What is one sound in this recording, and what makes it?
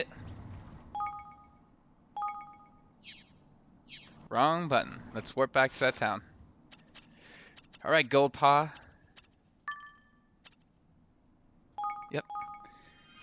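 Short electronic menu chimes beep several times.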